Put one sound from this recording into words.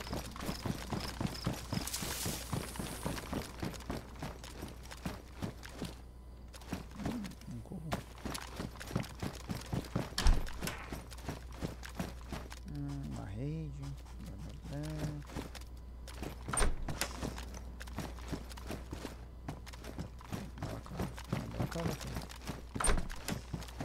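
Footsteps thud quickly on hard floors and stairs.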